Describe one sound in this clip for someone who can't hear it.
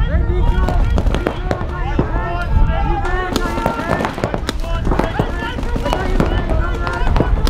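A paintball marker fires sharp pops nearby.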